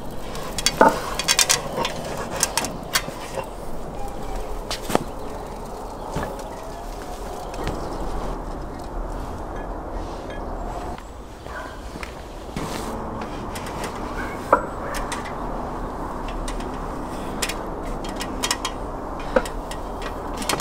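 Bricks knock and scrape against each other.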